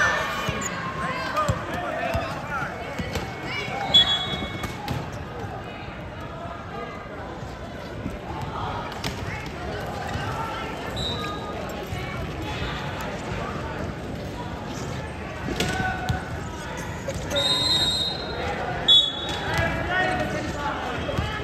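Young players shout and call to each other in a large echoing hall.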